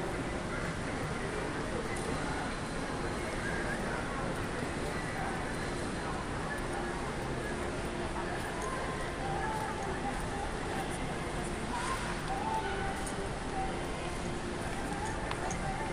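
A crowd of shoppers murmurs and chatters in a large indoor hall.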